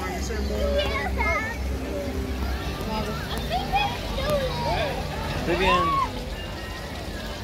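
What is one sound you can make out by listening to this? Water runs and splashes steadily over a large stone ball.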